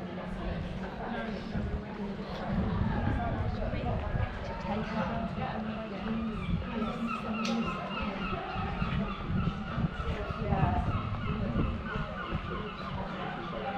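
Adult men and women chat in passing outdoors.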